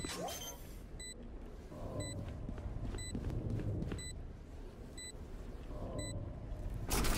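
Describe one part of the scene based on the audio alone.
An electronic device beeps at a steady, even pace.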